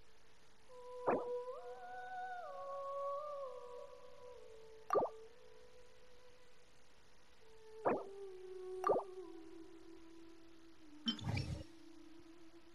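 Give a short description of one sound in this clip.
Short soft chimes ring out now and then as menus open and close.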